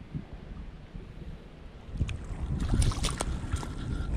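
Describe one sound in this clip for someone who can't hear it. Water splashes softly underfoot in shallow water.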